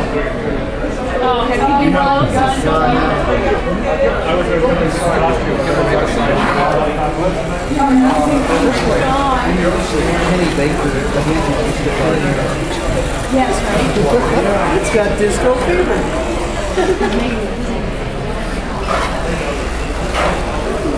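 Many people chatter around in an echoing hall.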